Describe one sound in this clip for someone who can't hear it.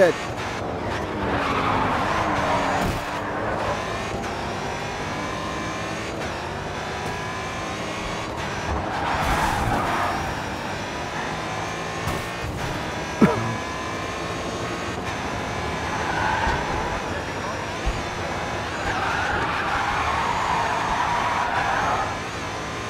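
Tyres screech as cars drift around corners.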